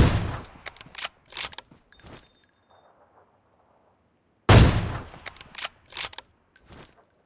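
Rifle shots crack sharply, one at a time.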